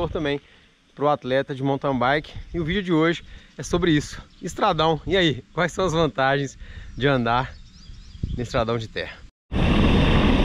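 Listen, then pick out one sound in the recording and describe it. A young man talks calmly and closely into a microphone.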